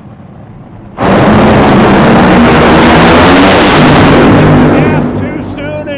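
Drag racing engines roar deafeningly as the cars launch and speed away, then fade.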